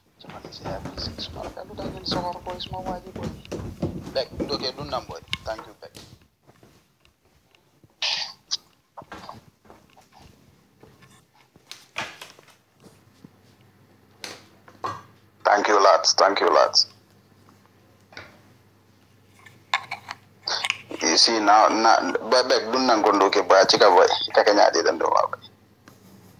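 A man speaks calmly and close to a phone microphone, with pauses.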